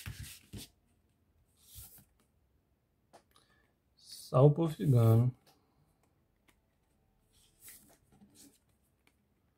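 Cards rustle and slide softly against each other.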